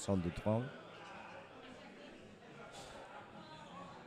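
A cue strikes a ball with a sharp click.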